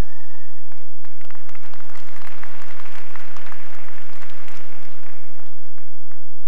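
A large crowd cheers in an echoing hall.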